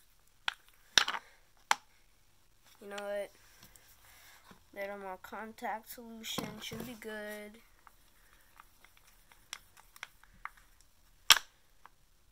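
A plastic bottle lid clicks open.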